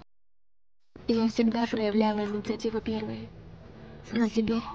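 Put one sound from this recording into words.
A young woman speaks tearfully up close.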